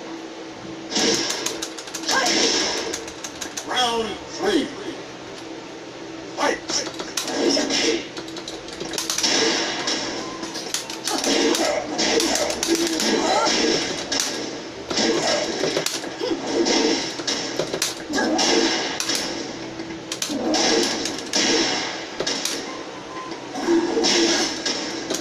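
Punches and kicks from a fighting game thud and smack through a television speaker.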